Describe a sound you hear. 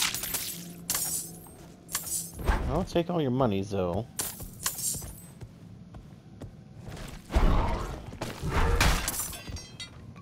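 Heavy blows strike creatures with sharp thuds and crashes.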